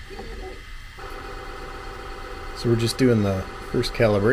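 A printer's motors whir with a steady hum.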